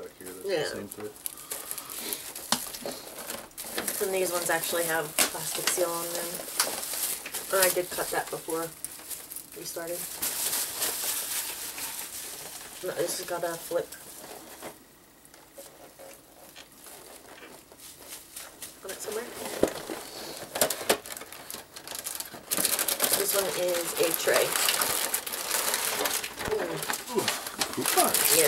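Cardboard packaging rattles and scrapes as it is handled.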